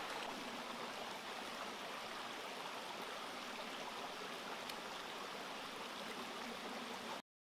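A stream rushes steadily over rocks close by.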